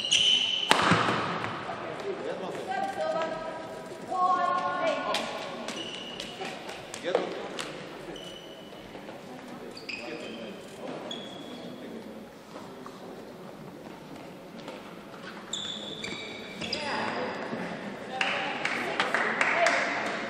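A shuttlecock is struck sharply by rackets, back and forth.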